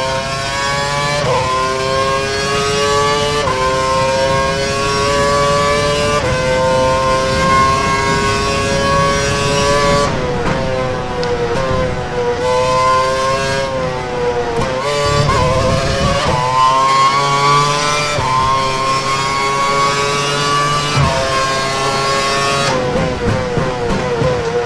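A racing car engine screams, rising in pitch and dropping sharply with each gear change.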